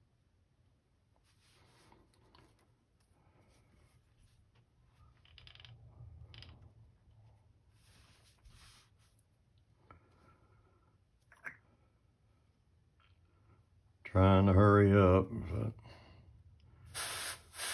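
Small plastic and metal parts click and rattle softly as they are handled.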